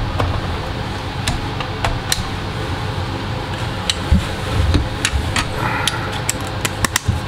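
Small metal parts click and tap as hands handle them.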